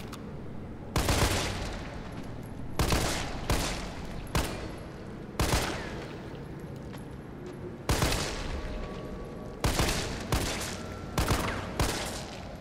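Pistol shots ring out loudly, one after another, with echoing tails.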